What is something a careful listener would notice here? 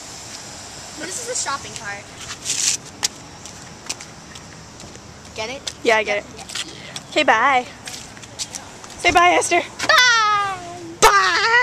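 A young girl talks with animation up close.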